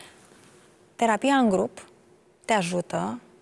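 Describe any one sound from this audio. A young woman speaks in short emotional bursts close to a microphone.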